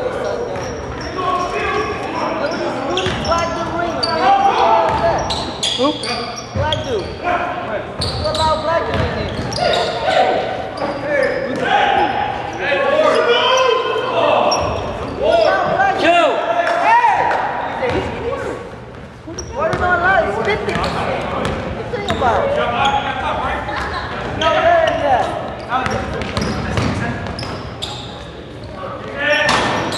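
Young men shout and call out during the game.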